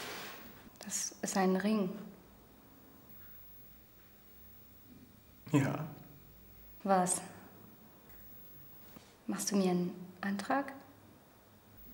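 A woman speaks quietly and calmly nearby.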